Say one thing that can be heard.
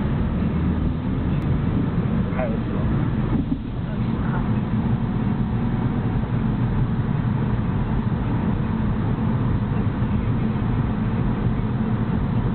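Tyres roll on the road surface with a steady rumble.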